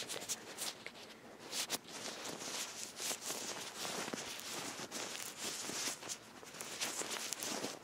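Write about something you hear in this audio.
Latex gloves squeak and rustle as gloved hands rub together close to the microphone.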